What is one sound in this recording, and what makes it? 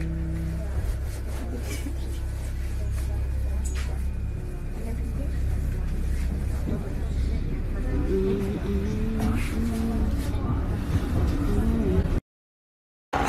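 A metro train rumbles along with a low steady hum.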